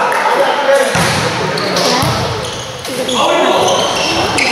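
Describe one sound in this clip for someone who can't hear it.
A volleyball is struck hard and thuds.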